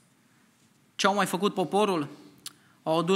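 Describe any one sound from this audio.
A man speaks calmly through a microphone, reading out.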